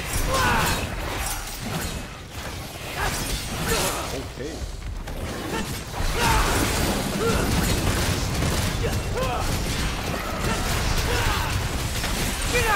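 Monsters shriek and growl.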